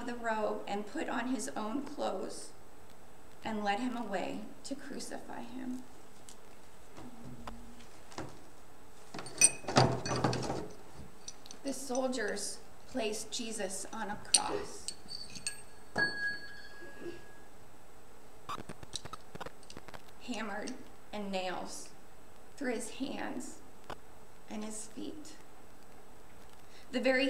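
A young woman reads aloud and speaks calmly.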